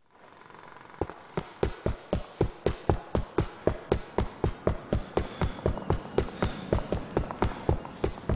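Footsteps slap quickly on pavement as a man runs.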